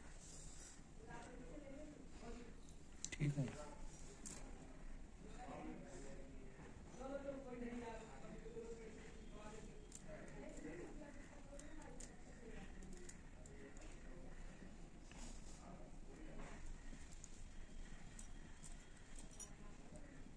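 Small metal beads clink and rustle softly as they are handled.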